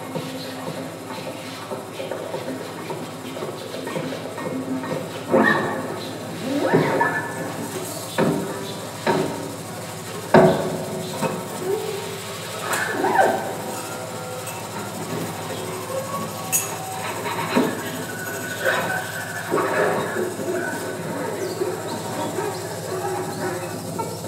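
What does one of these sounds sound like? A pedal steel guitar plays slow, sliding notes in a large room.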